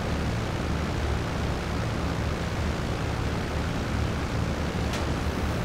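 Propeller engines of a large plane drone steadily and loudly.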